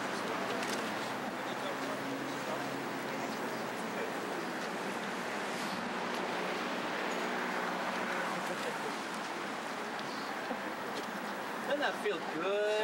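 A crowd murmurs softly outdoors.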